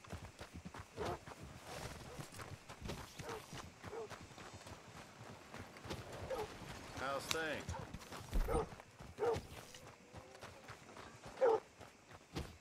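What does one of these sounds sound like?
Horses snort and whinny nearby.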